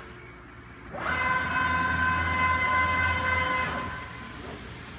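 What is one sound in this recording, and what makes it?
A cutting machine whirs loudly as its head moves.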